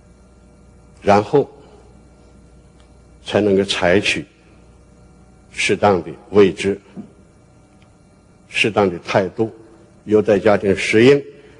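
An elderly man speaks slowly and deliberately through a microphone, with pauses between phrases.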